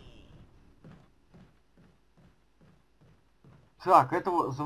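Footsteps fall at an even walking pace on a floor.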